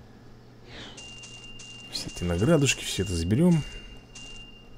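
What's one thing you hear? Bright electronic chimes jingle as rewards are collected.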